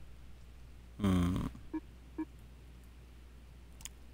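A short interface blip sounds as a menu page changes.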